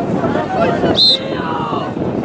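A referee's whistle blows once, short and sharp.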